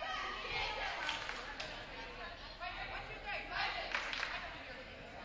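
A volleyball is struck with a hand.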